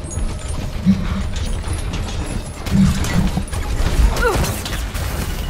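A game weapon fires in heavy bursts.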